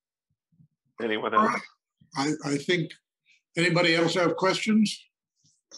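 Another elderly man speaks with animation over an online call.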